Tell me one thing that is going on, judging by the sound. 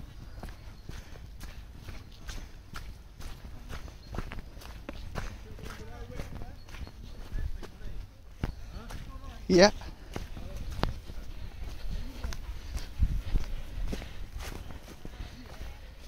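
Footsteps crunch steadily over soft ground and dry leaves.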